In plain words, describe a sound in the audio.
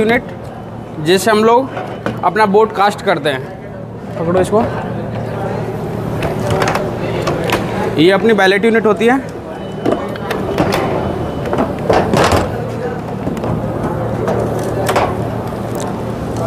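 Plastic cases click and knock as they are opened and handled.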